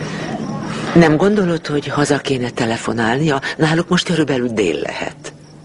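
A woman speaks emotionally, close by.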